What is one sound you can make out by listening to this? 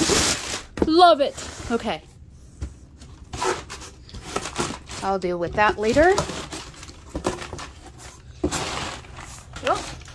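A blade slices through cardboard tape.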